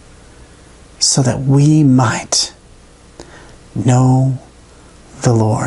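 A man speaks calmly and close to a microphone, with short pauses.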